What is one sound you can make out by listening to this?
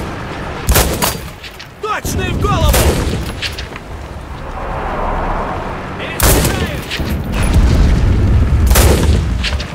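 A rifle bolt clacks as it is worked.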